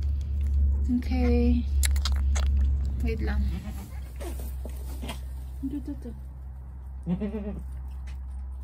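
A goat bleats.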